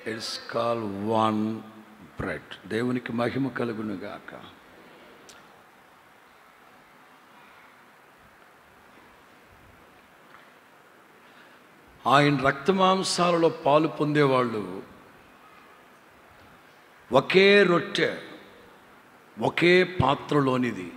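A middle-aged man speaks into a microphone in bursts, with long pauses in between.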